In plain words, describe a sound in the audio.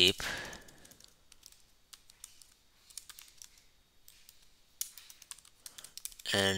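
Keys clatter on a keyboard in quick bursts of typing.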